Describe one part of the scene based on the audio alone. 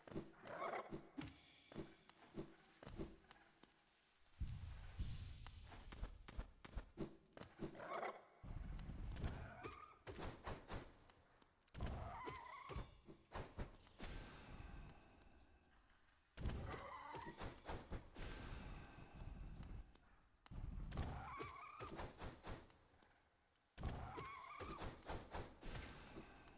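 A blade swishes and slashes in quick strikes.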